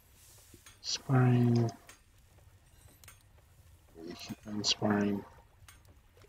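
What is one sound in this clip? A man speaks briefly and casually close to a microphone.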